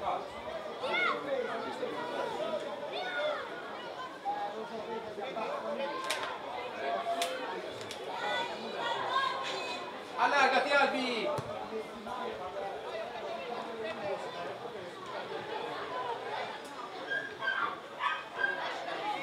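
Young men shout and call out to each other across an open field outdoors.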